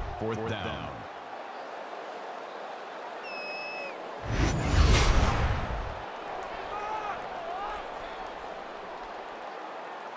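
A stadium crowd murmurs steadily in the distance.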